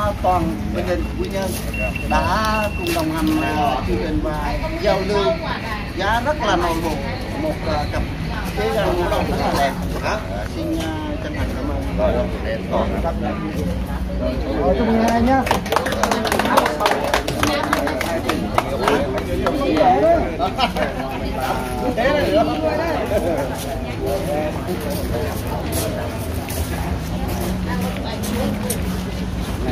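Several people talk at once outdoors.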